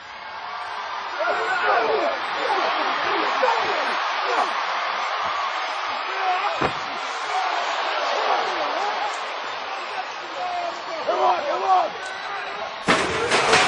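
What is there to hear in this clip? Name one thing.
Men grunt and shout as they brawl.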